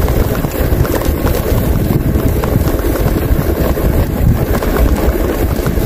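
Bicycle tyres roll over a concrete path.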